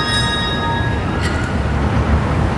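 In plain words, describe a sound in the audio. Handbells ring out in chords and fade.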